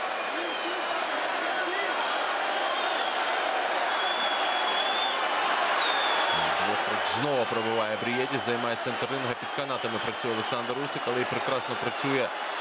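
A large crowd cheers and roars loudly in a big echoing hall.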